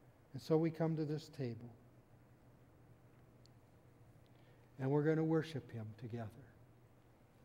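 An elderly man speaks calmly through a microphone in a large echoing room.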